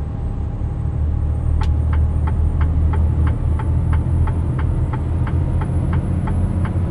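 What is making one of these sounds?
A truck engine drones steadily at speed.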